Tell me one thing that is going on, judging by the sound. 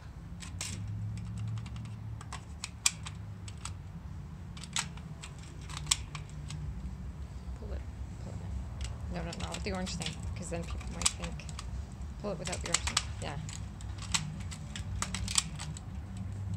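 Hard plastic parts click and tap as they are handled.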